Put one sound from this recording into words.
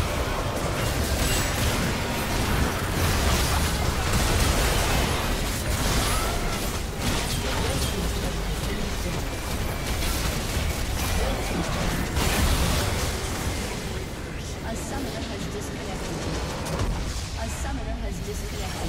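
Game spells and attacks crackle and burst in quick succession.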